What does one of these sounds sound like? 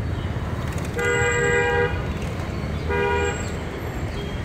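Vehicle horns honk nearby in short blasts.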